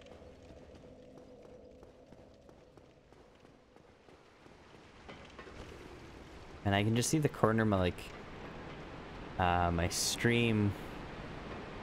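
Heavy armoured footsteps clank on stone.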